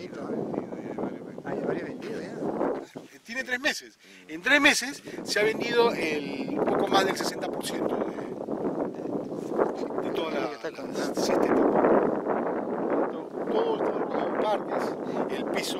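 A middle-aged man talks steadily close by, outdoors.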